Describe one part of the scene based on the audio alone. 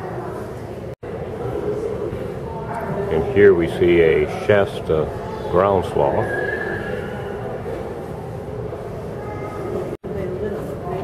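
A crowd of people murmurs in a large echoing hall.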